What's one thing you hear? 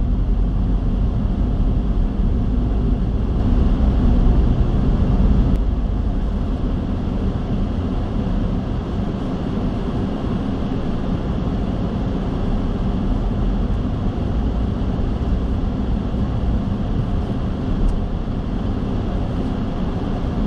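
A car engine hums steadily inside the car as it drives along.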